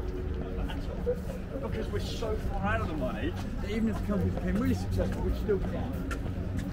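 Several adults talk and chatter nearby outdoors.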